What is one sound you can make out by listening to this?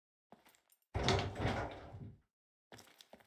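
A metal locker door rattles and creaks open.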